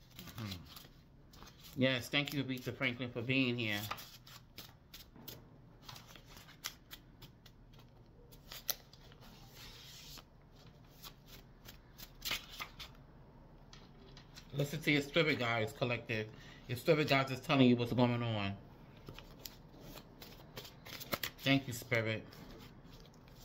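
Paper cards rustle and flick as they are shuffled by hand.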